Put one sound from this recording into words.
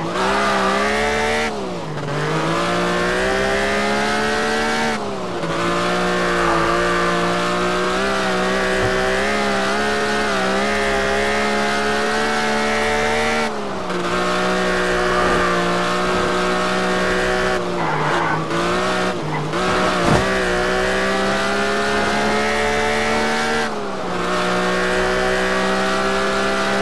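A car engine roars steadily at high revs, dipping briefly as gears shift.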